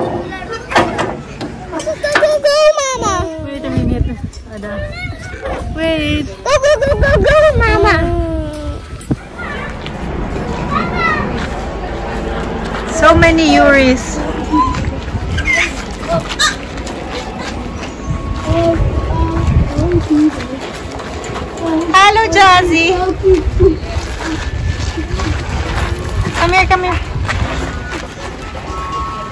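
Children play and call out outdoors in the distance.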